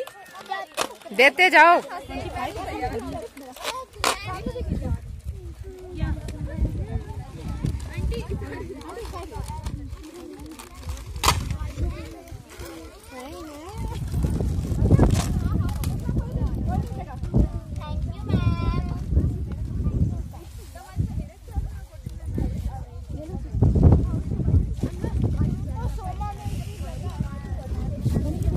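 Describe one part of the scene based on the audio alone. Children chatter and call out nearby, outdoors.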